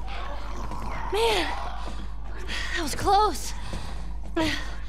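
A young girl speaks breathlessly nearby.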